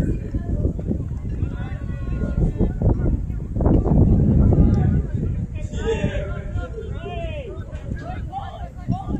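Young men shout and call to each other across an open field outdoors.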